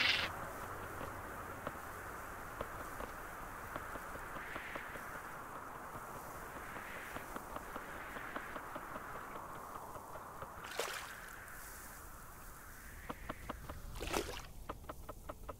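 Shallow water washes and hisses steadily.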